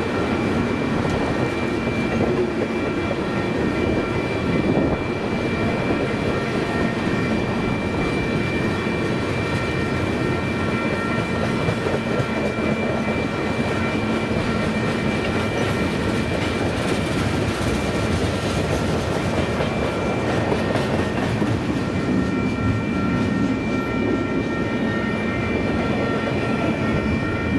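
A long freight train rolls past close by with a steady rumble and clatter of wheels on the rails.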